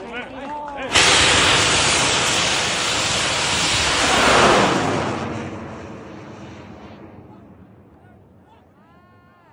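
A rocket roars loudly as it launches and fades into the distance.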